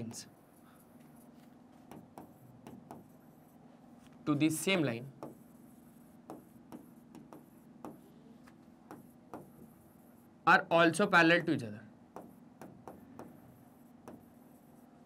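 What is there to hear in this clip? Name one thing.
A marker taps and squeaks on a board.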